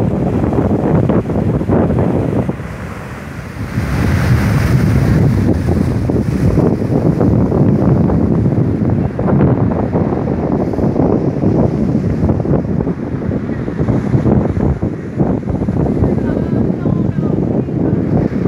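Sea waves break and crash ashore.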